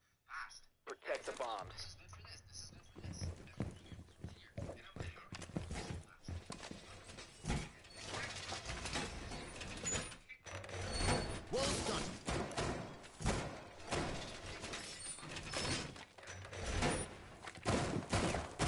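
Metal panels slam and thud against walls.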